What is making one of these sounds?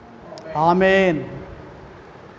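An elderly man speaks briefly through a microphone.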